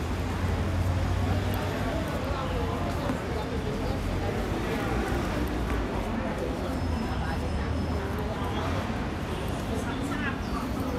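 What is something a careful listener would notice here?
People chat in the distance outdoors.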